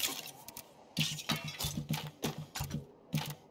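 Short menu clicks and blips sound in quick succession.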